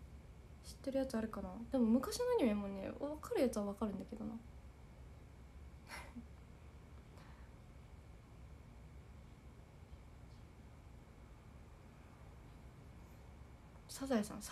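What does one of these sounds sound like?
A young woman speaks softly and closely.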